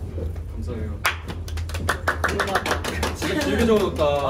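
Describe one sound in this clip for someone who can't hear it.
A young man claps his hands rapidly.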